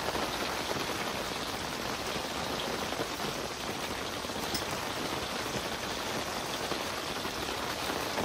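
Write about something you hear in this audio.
A knife scrapes and taps on a wooden board.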